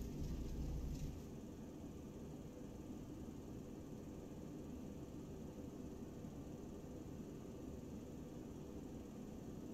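Jet engines rumble steadily.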